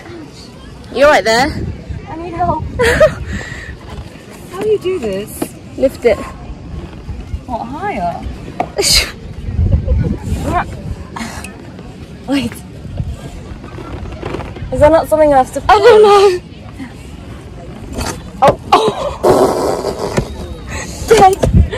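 A young woman talks and laughs close up, cheerfully.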